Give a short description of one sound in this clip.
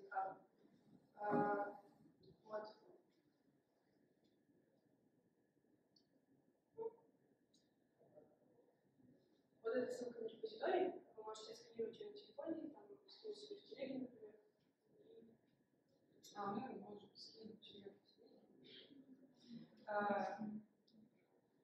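A young woman speaks calmly to a group in a room with a slight echo.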